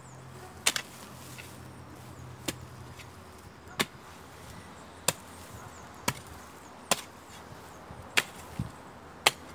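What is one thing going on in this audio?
Loose earth scrapes as a hoe drags through it.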